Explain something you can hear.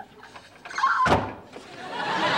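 A door slams shut.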